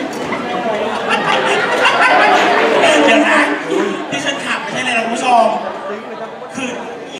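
Young men and women close by shout excitedly.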